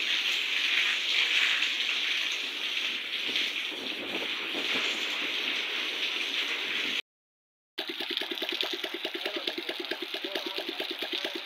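Steady rain pours down and drips from roof edges onto wet ground.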